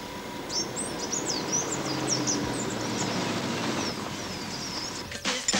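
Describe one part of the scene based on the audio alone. A car engine rumbles as a car drives slowly away.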